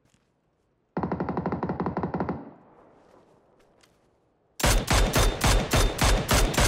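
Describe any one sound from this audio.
A rifle fires rapid gunshots.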